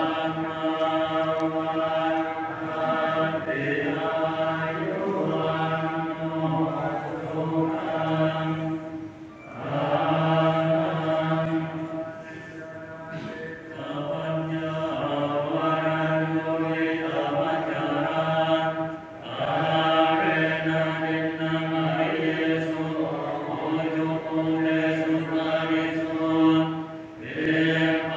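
A crowd of men and women chants together in a steady, drawn-out tone.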